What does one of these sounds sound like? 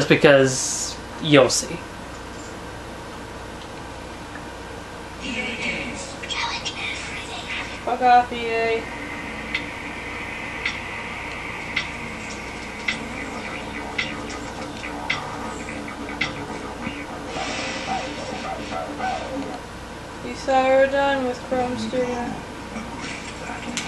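Tinny video game music and sound effects play from a television speaker.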